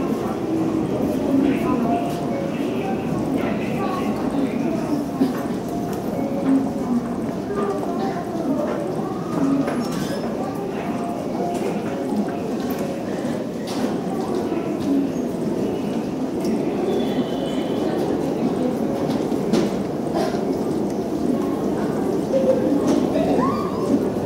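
A crowd of people murmurs and chatters in an echoing underground hall.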